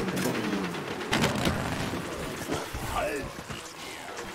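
A weapon fires a rapid burst of zapping shots.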